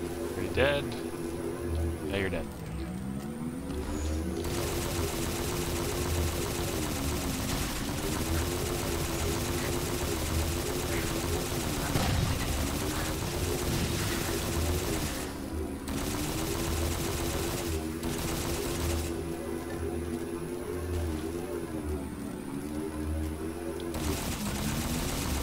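A hovering vehicle's engine hums steadily, rising and falling in pitch as it speeds and turns.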